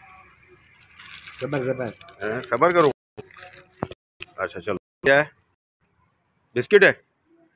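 Plastic snack wrappers crinkle in a man's hands.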